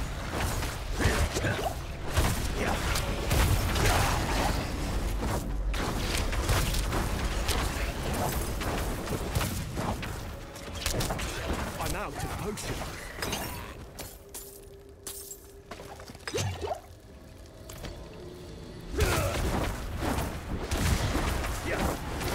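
Fiery blasts boom and crackle.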